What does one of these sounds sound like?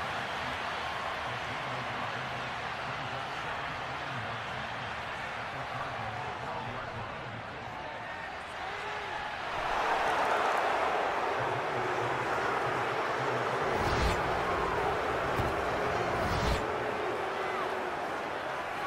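A large crowd cheers in a stadium and swells into a loud roar.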